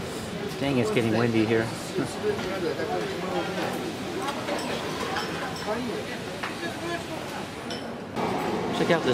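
People chat at nearby tables outdoors.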